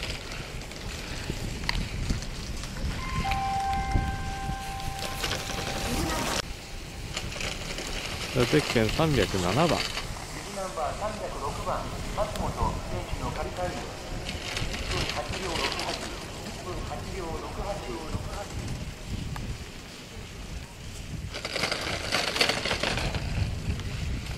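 Skis scrape and hiss across hard snow.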